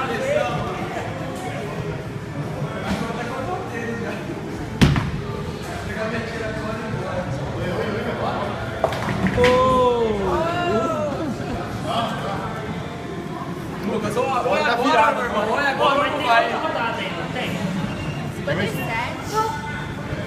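Voices chatter in a large, echoing room.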